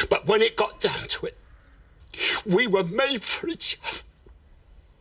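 An older man speaks angrily, close by.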